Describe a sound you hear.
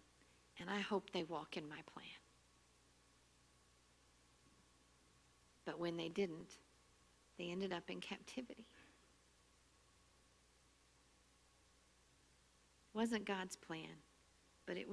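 A middle-aged woman speaks calmly in short phrases with pauses, close by.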